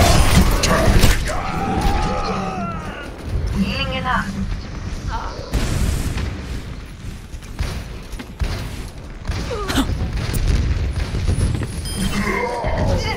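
Gunshots and blasts ring out in a fast-paced video game.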